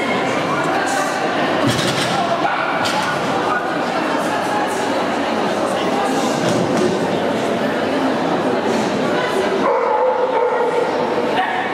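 A woman calls out commands to a dog while running.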